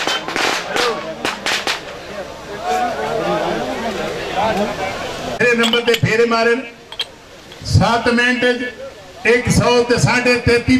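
A crowd of men shout and cheer outdoors.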